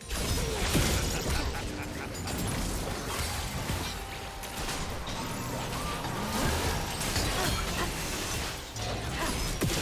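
Game spell effects crackle and whoosh in a busy fight.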